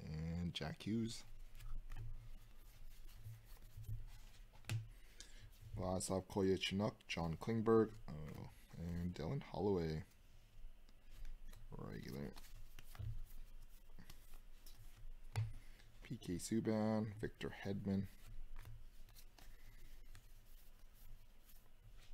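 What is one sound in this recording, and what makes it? Trading cards slide and flick against each other in a pile.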